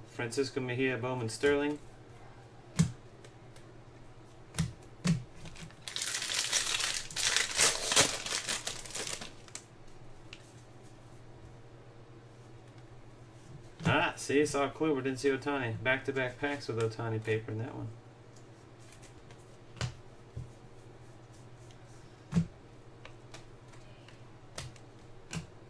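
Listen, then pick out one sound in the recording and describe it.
Trading cards click and slide as they are flipped.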